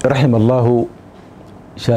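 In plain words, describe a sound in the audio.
A man speaks calmly into a microphone, close by.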